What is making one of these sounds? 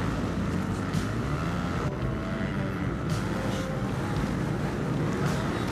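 A dirt bike engine roars loudly, revving up and down.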